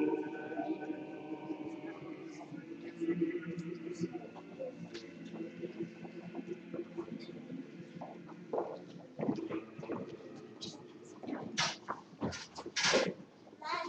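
Footsteps shuffle on a wooden floor.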